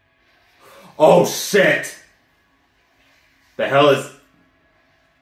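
A young man exclaims loudly close by.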